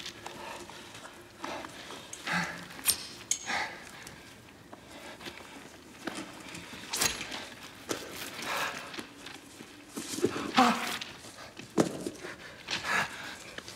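Cloth rustles as hands fumble with clothing.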